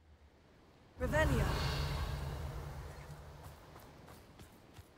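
A magic spell rings out with a bright shimmering chime that slowly fades.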